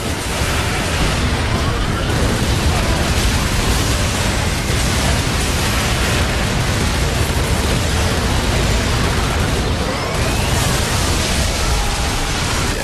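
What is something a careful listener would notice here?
A car engine roars loudly at speed.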